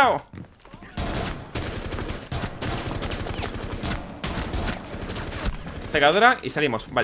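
Rapid gunshots ring out in quick bursts.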